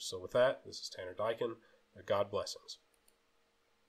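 A middle-aged man speaks calmly into a microphone, heard as if over an online call.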